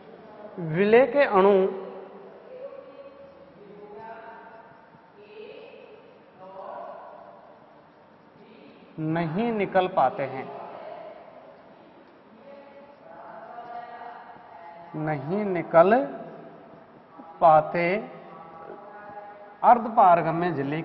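A young man speaks clearly and steadily, as if teaching, close by.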